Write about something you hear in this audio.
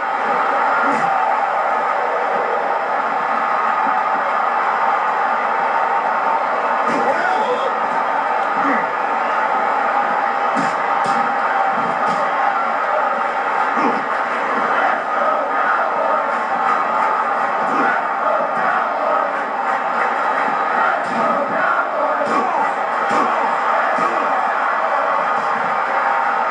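Punches and slams thud in a wrestling video game.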